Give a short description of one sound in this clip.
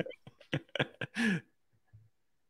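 Two men laugh over an online call.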